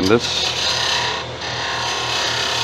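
A hand tool scrapes against a spinning workpiece with a hissing sound.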